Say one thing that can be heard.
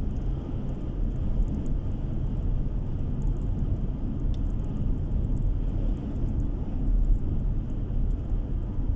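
A vehicle drives steadily along a road, its tyres and engine rumbling low inside the cabin.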